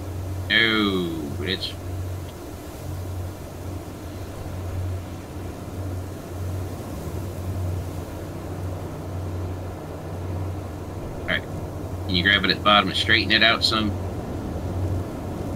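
A low mechanical hum drones steadily.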